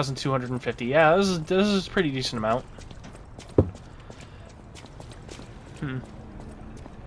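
Footsteps tap on cobblestones.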